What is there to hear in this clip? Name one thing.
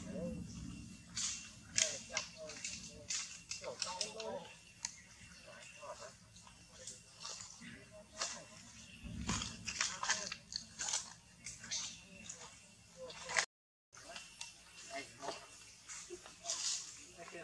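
A macaque rustles and shakes leafy branches as it climbs.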